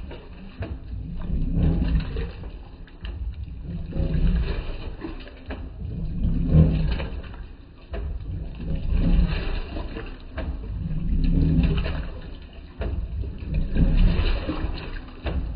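Water sloshes against the sides of a washing machine tub.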